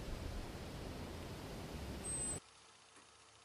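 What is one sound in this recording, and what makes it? Wind rushes loudly outdoors.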